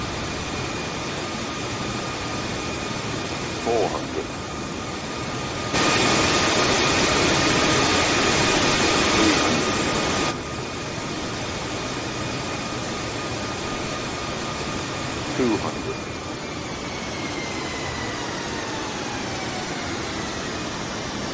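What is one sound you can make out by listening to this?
A jet airliner's engines roar steadily in flight, louder for a while up close.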